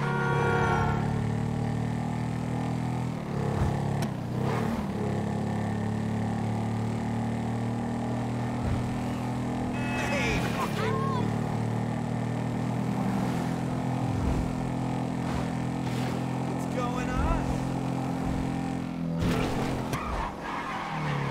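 A motorcycle engine drones steadily at speed.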